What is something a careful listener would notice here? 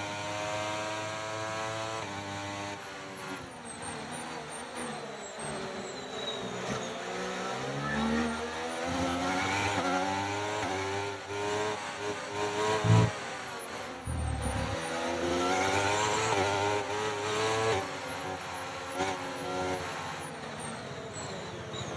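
A racing car engine whines loudly, its pitch rising and falling as the gears shift.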